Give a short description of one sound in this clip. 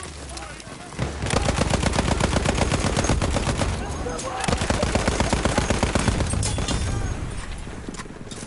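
A heavy machine gun fires long rapid bursts.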